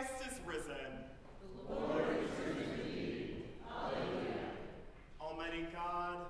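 A choir sings in a large echoing hall.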